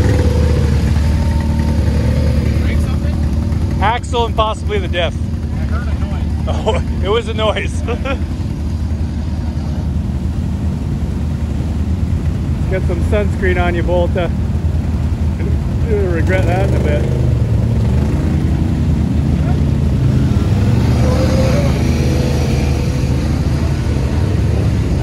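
ATV engines rumble steadily close by.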